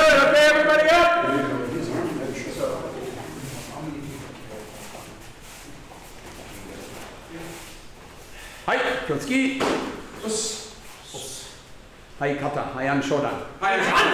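A man calls out commands loudly in a room with some echo.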